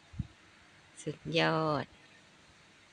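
An elderly woman speaks briefly and calmly nearby.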